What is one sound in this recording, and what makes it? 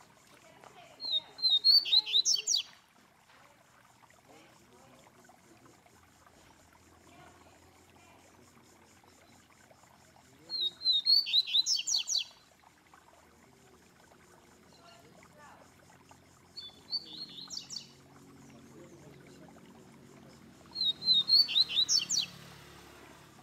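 A caged songbird sings short, bright bursts of rapid trilling notes, several times with pauses between.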